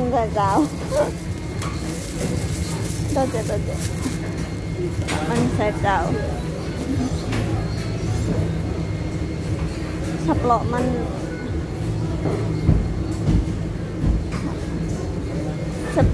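Nearby voices of men and women chatter in the background.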